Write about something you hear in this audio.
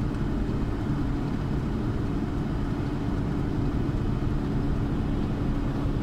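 A semi-truck rushes past close alongside.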